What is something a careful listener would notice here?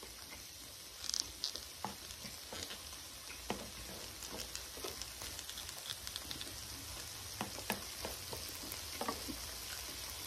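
Metal tongs clack against a metal pan.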